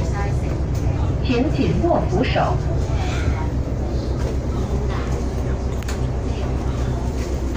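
A bus engine rumbles low and steady.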